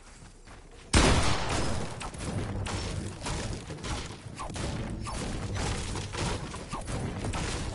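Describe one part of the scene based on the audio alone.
A pickaxe strikes wood in quick, repeated knocks.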